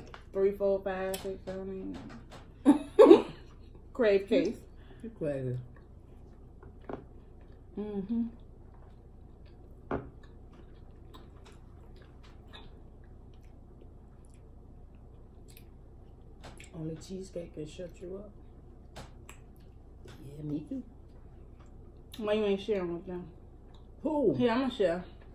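Chips crunch as young women chew them.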